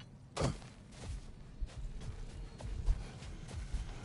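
Heavy footsteps crunch across snow.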